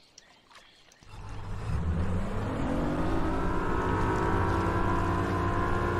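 A boat motor starts up and drones steadily, rising in pitch as it speeds over water.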